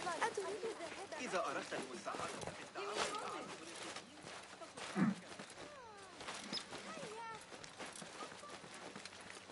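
Footsteps run and scuff over stone.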